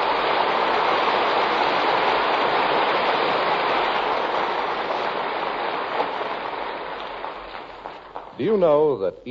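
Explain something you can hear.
Static hisses loudly from an old radio and slowly fades.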